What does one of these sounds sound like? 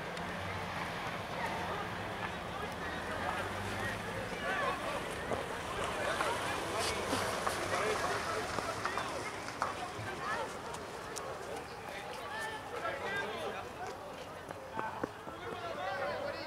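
Spectators nearby talk and call out.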